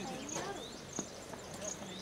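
A cricket bat hits a ball with a sharp crack.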